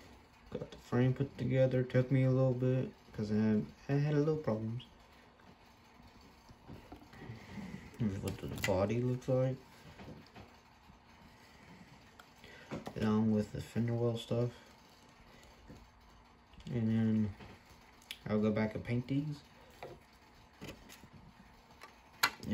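Small plastic parts click and tap as hands handle them close by.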